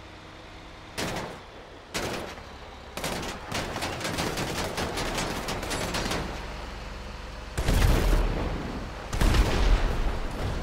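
Explosions boom loudly near by.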